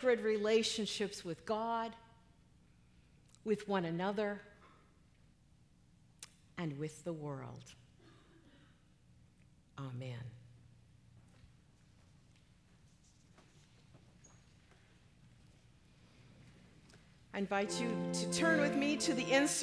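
A middle-aged woman speaks calmly into a microphone, pausing now and then.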